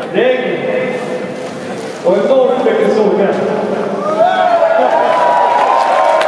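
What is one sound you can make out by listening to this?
A man speaks into a microphone over a stadium loudspeaker.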